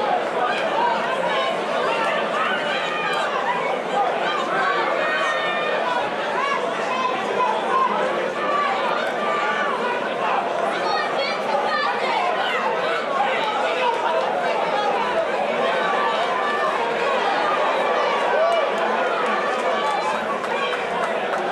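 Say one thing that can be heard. A crowd shouts and cheers in a large arena.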